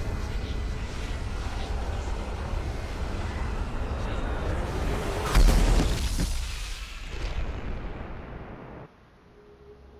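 A spaceship's engines rumble and fade into the distance.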